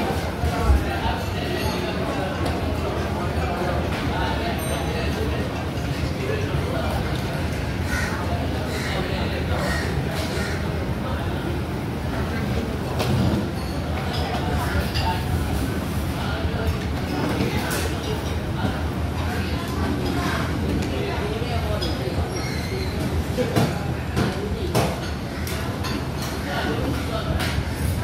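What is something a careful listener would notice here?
Many people chatter in the background of a busy, echoing hall.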